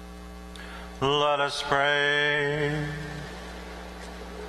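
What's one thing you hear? A man sings a short chant aloud, echoing through a large hall.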